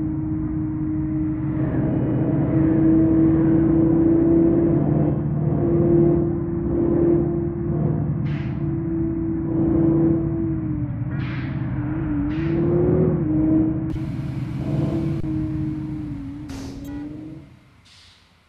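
A car engine hums steadily at high speed and rises and falls in pitch.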